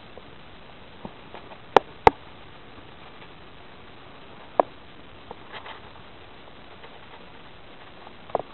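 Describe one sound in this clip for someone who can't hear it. Flames crackle and pop as fabric burns.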